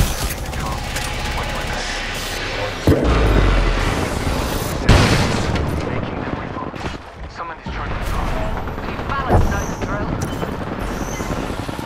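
Electric crackling buzzes and snaps.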